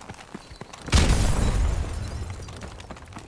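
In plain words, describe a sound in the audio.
A car explodes with a deep boom.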